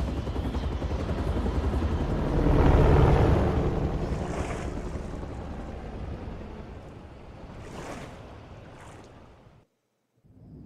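Stormy wind and water roar loudly, then fade away.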